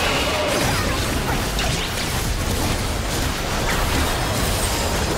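Game spell effects whoosh and crackle in a busy fight.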